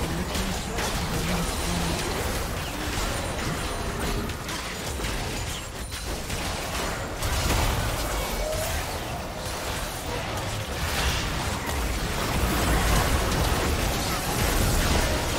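Video game spells whoosh and burst in a busy fight.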